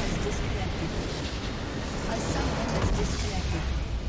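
A structure explodes with a loud crash.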